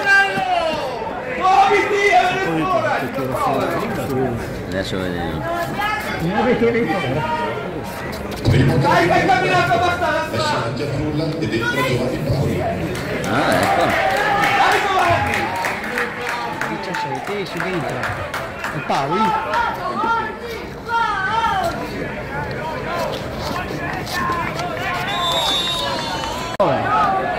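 A crowd of spectators murmurs and calls out in the distance.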